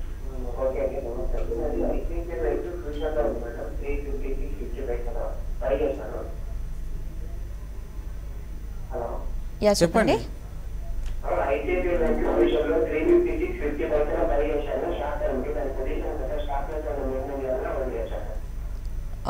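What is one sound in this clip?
A young woman reads out calmly, close to a microphone.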